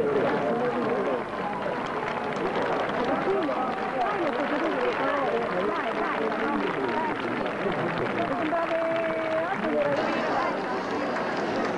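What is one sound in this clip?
A large crowd of men and women chatters outdoors.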